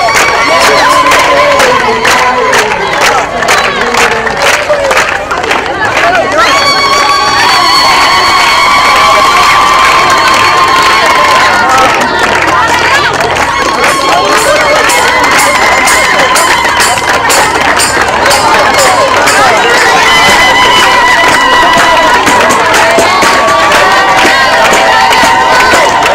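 A group of women sings loudly together outdoors.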